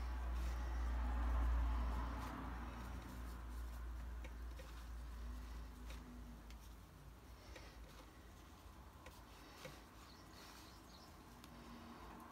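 A paintbrush dabs and brushes softly on paper.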